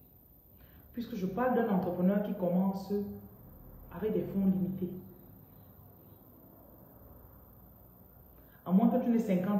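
A woman speaks calmly and close up, in short bursts with pauses.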